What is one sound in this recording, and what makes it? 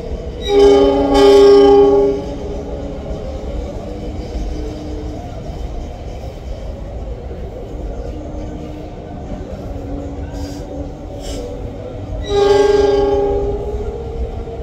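A diesel locomotive horn blows loudly, twice.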